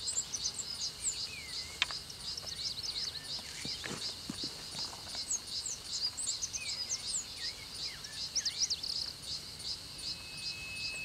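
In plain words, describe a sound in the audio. A climber's hands and shoes scrape faintly on rock.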